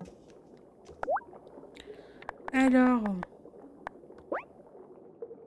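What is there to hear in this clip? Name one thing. Short rising electronic blips sound as game menus open.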